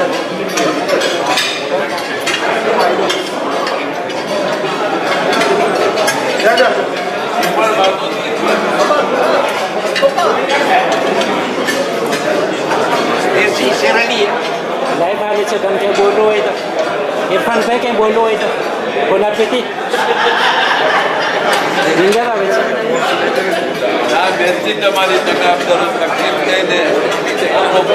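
A crowd of men chatters in a large echoing hall.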